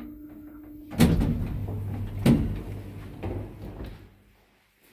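Lift doors slide open with a rumble and a thud.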